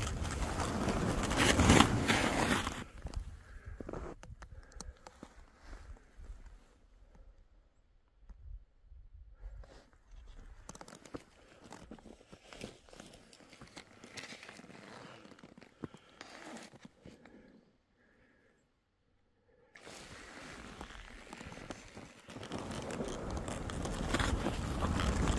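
Skis swish and hiss through deep powder snow.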